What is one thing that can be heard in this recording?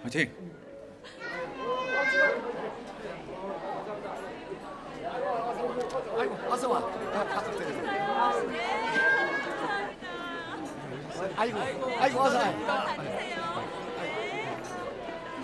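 A crowd of men and women chatter and laugh in a busy room.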